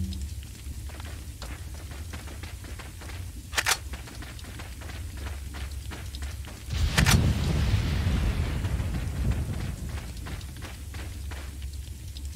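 Footsteps crunch over the ground at a walking pace.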